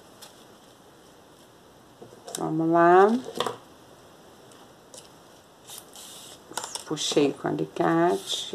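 Ribbon rustles and crinkles softly as it is folded by hand.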